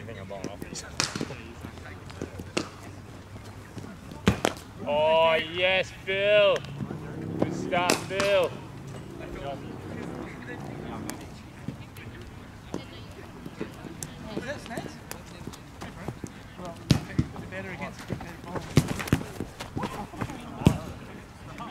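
A cricket bat sharply cracks against a ball, again and again.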